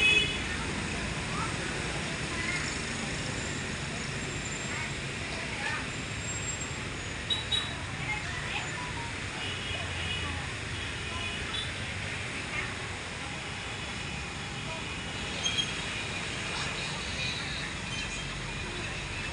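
Men and women talk and murmur nearby.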